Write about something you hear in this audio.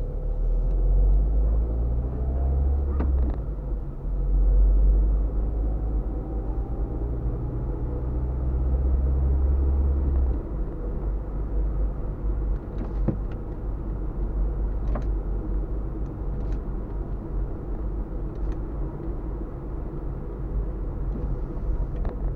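Tyres rumble over a bumpy road surface.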